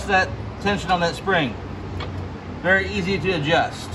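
A metal latch clicks as a hand turns it.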